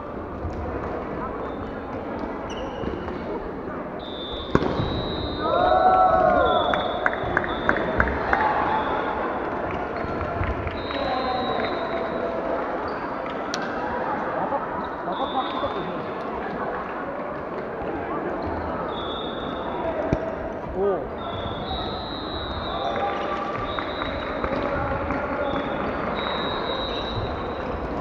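A crowd of players and spectators chatter and call out throughout.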